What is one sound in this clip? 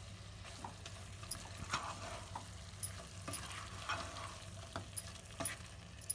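A metal spoon scrapes and stirs food in a pot.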